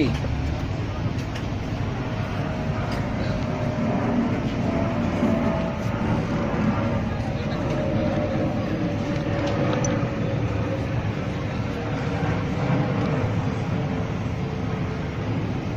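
A cloth rubs and polishes a leather shoe.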